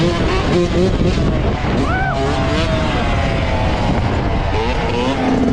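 Dirt bike engines rev and roar close by, rising and falling in pitch.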